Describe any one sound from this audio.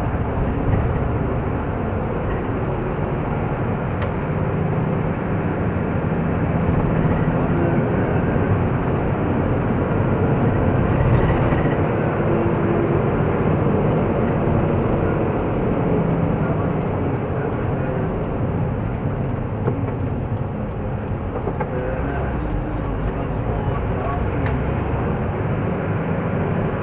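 A vehicle engine hums steadily from inside while driving.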